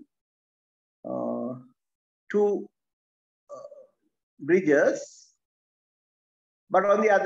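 A man speaks calmly through a microphone, in short phrases with pauses.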